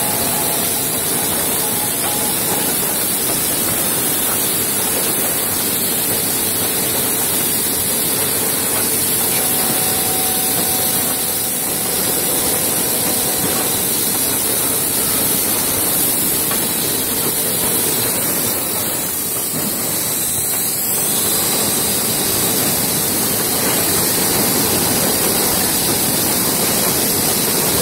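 Wooden veneer sheets slide and rustle along a conveyor.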